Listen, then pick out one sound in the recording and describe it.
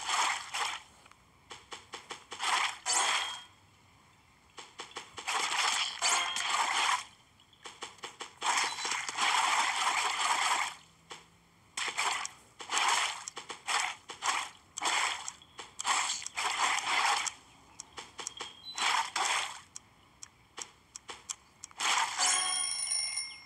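Quick swooshing slashes sound again and again.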